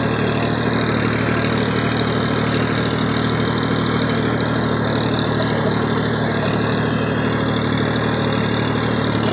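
A tractor engine chugs loudly and steadily close by.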